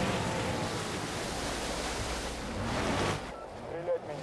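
A water scooter engine roars across the water.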